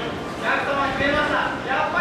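A sea lion splashes into water.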